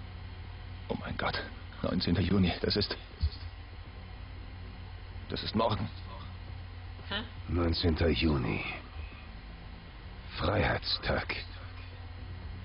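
A man speaks in a low, serious voice in short phrases.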